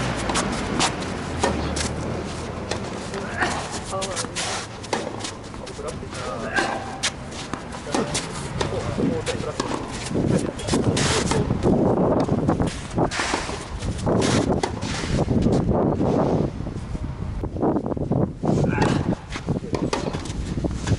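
A tennis ball is struck with a racket again and again.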